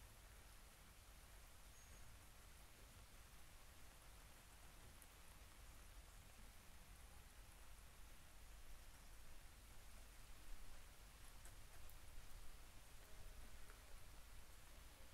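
A kiln fire roars steadily.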